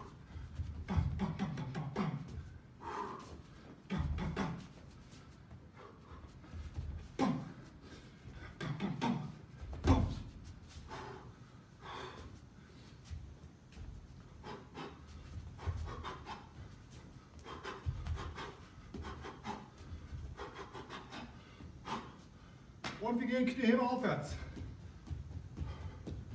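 Feet shuffle and bounce on a boxing ring canvas.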